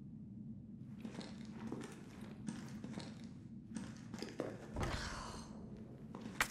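Footsteps scuff on a hard floor.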